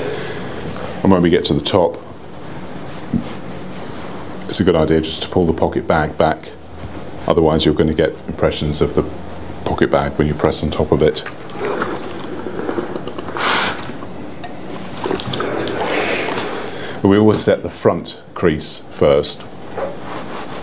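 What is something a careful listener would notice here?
A middle-aged man talks calmly into a clip-on microphone, close by.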